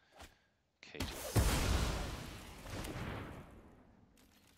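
A magical spell whooshes.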